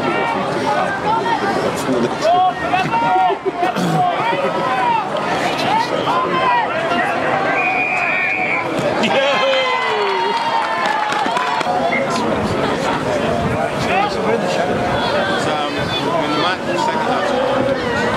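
Spectators on the sideline cheer and shout encouragement.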